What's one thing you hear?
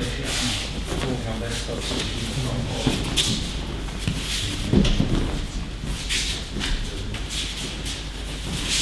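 Feet shuffle and slide across a mat.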